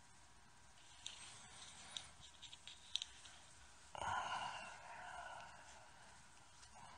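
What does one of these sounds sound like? A man talks quietly close to a microphone.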